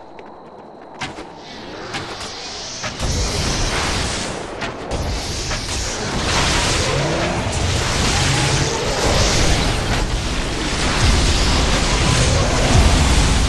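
Weapons clash and strike in a noisy fight.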